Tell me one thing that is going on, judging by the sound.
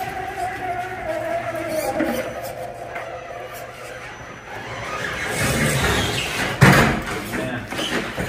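Plastic wheels scrape and clatter over rock.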